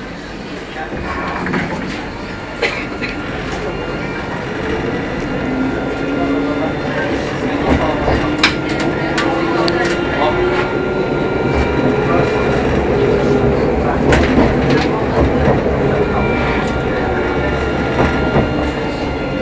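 Tram wheels rumble and clatter on the rails.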